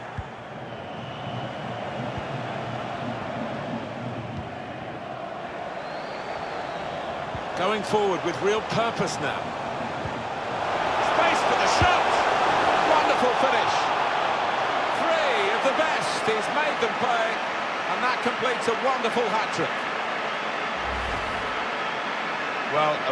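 A large stadium crowd roars steadily and swells.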